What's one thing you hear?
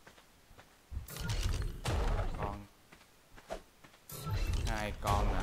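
A giant robot stomps heavily nearby.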